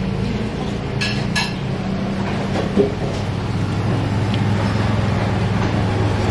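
A fork clinks against a bowl.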